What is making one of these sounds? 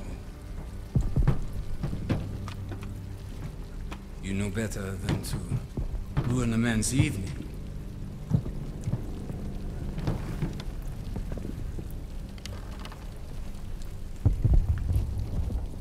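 Explosions thud in the distance.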